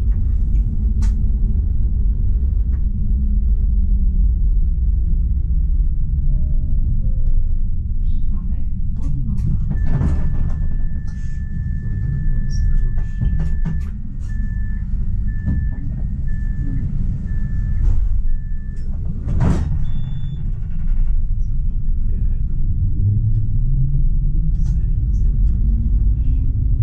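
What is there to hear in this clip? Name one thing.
A tram rumbles along its rails with a low, steady drone.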